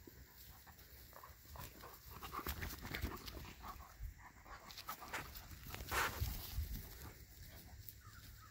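Paws scuffle on grass.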